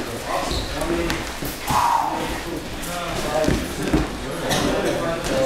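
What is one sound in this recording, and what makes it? Bodies thump onto a padded mat.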